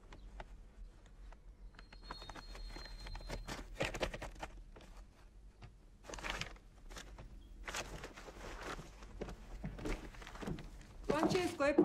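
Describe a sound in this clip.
Paper rustles and crinkles as letters are handled.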